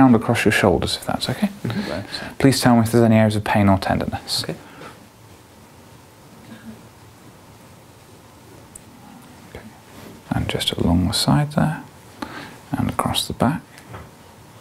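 A man talks calmly and clearly, close by.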